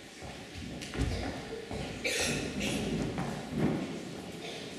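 Footsteps of a man knock on a wooden floor.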